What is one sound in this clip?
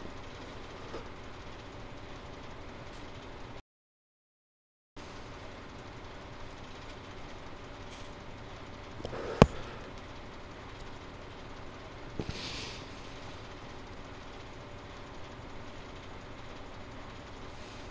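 Machinery rattles as crops are lifted.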